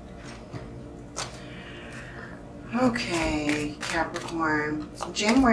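Playing cards riffle and flick as a deck is shuffled.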